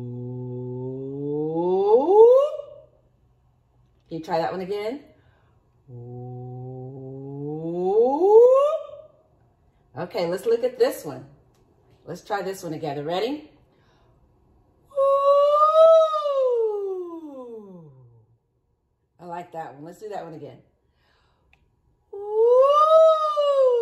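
A woman sings vocal slides that sweep up and down in pitch.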